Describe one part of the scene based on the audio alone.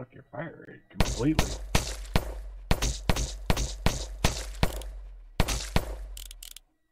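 Blaster shots fire in sharp, repeated bursts.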